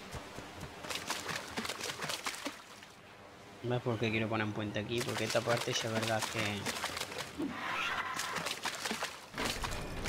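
Quick footsteps patter on sand and in shallow water.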